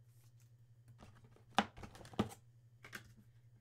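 Plastic card holders click and rustle in someone's hands.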